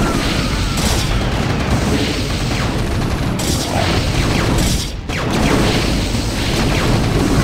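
Rapid gunfire crackles in a battle.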